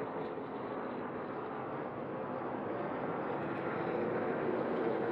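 A racing truck engine roars loudly at high speed, growing slightly louder.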